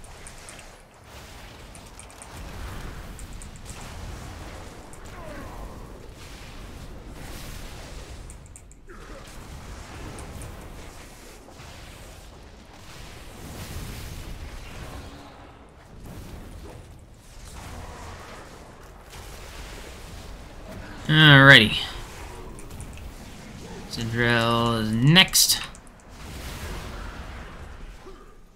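Game spell effects whoosh and crackle in battle.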